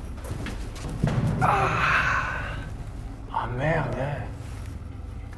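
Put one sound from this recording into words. A young man shouts.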